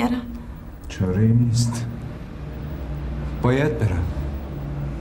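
A man speaks in a low, tense voice, close by.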